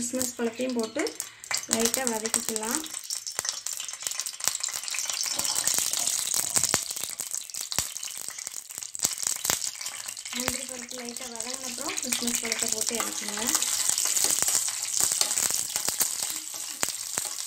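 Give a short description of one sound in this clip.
Hot oil sizzles and crackles in a metal pan.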